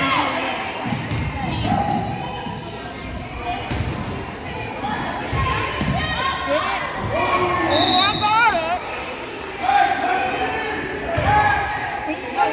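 A basketball bounces on a hard floor.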